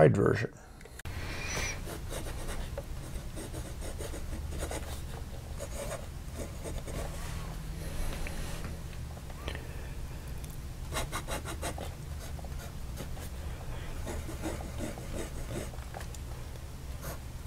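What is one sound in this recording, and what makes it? A pen nib scratches softly on paper.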